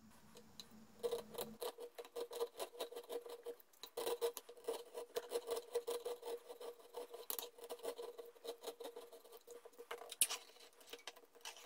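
A blade shaves and scrapes wood in quick, rasping strokes.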